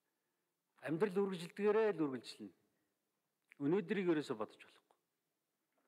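A middle-aged man speaks calmly into a microphone in short phrases.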